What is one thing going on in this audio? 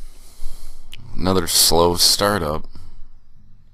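A young man's voice sounds loudly and close through a microphone, in a short burst.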